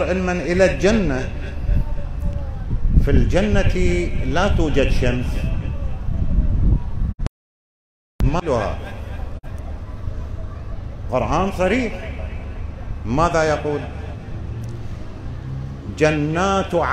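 An elderly man speaks into a microphone, preaching in a slow, chanting voice that echoes through a hall.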